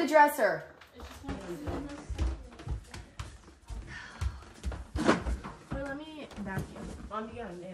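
Bare feet thud on a wooden floor.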